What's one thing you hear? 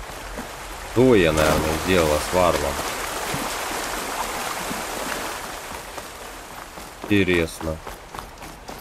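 A young man speaks briefly with animation into a close microphone.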